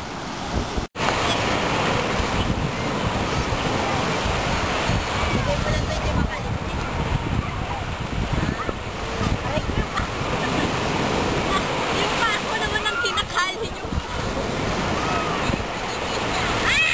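Children talk and call out with animation nearby.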